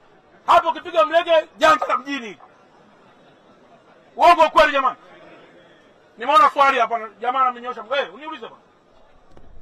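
A man shouts through a megaphone with animation, loud and distorted.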